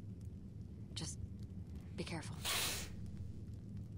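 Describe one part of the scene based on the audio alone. A young woman speaks quietly and sadly.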